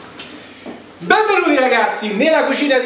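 A young man speaks cheerfully and with animation, close by.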